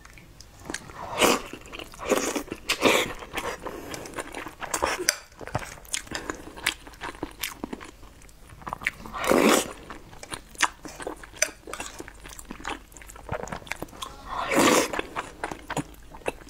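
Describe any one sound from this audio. A young woman chews food with wet smacking sounds.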